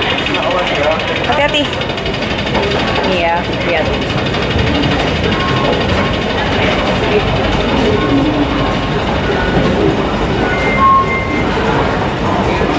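An escalator hums steadily.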